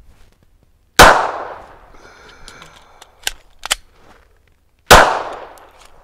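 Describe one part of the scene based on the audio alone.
A pistol fires loud single shots that echo outdoors.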